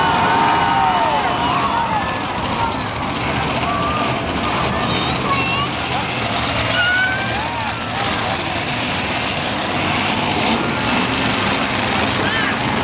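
A monster truck engine roars loudly nearby.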